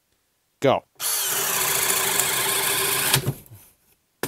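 A cordless drill whirs steadily as it bores into wood, then stops.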